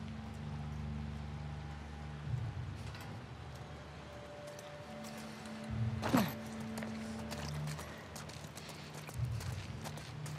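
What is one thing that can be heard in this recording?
Footsteps shuffle over rubble and broken debris.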